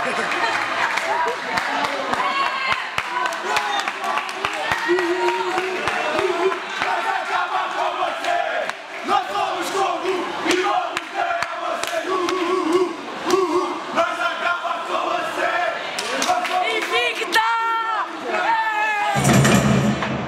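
A crowd cheers and shouts excitedly in an echoing hall.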